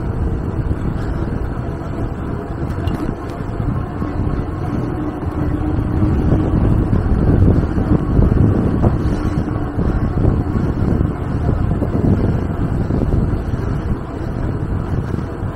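Wind buffets and rumbles against a moving microphone.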